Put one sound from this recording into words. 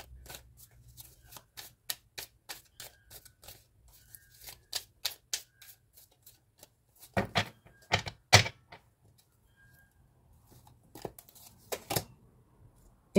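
Cards riffle and tap as they are shuffled.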